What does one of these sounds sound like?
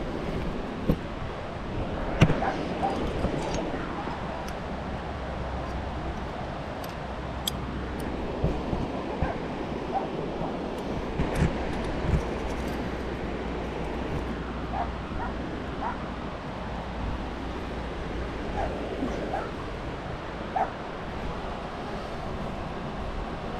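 Hands scrape and tap on rough rock.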